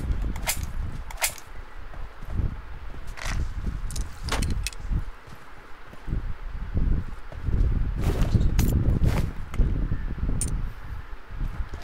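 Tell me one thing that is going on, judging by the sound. Footsteps thud on hard ground in quick bursts.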